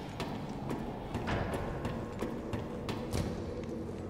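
Hands and feet clang on a metal ladder.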